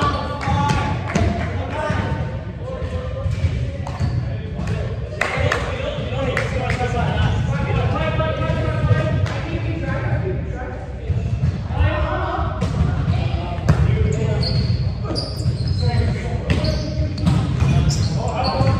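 A ball thuds against the floor and bodies.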